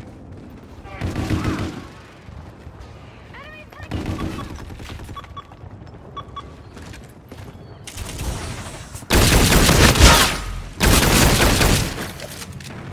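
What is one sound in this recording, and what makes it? Rapid gunfire bursts out loudly in short volleys.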